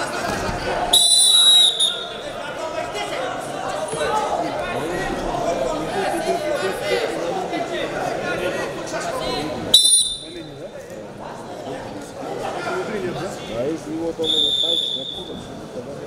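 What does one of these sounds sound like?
A referee blows a whistle in short sharp blasts.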